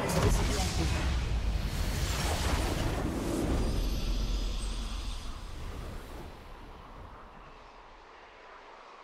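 A triumphant game victory fanfare booms loudly, then fades away.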